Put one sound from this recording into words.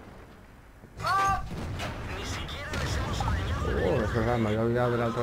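A shell explodes with a loud boom.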